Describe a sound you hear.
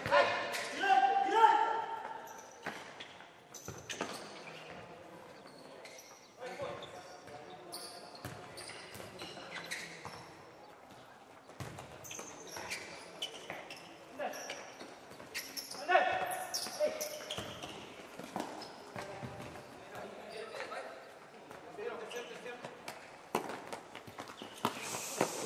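Sneakers squeak on the hard floor.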